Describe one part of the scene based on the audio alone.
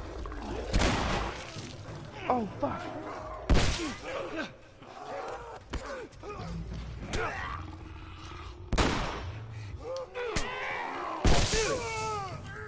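A creature shrieks and snarls.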